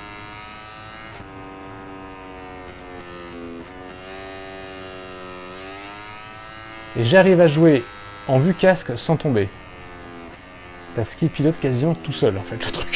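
A motorcycle engine whines steadily, its pitch rising and falling through gear changes.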